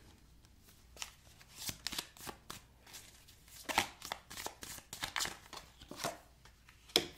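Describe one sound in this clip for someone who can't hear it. Cards shuffle and rustle in hands.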